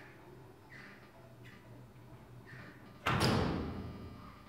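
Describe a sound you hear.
Elevator doors slide shut with a thud.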